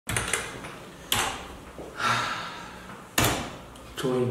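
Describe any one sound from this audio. A man taps keys on a keyboard.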